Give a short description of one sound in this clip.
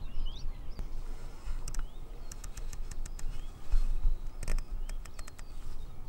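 A scope turret clicks as it is turned.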